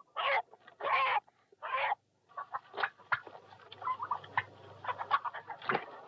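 A chicken clucks and flaps its wings.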